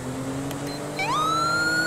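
A police siren starts wailing, rising in pitch.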